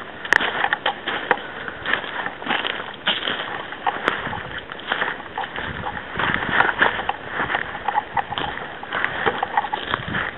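Footsteps crunch on dry twigs and pine needles.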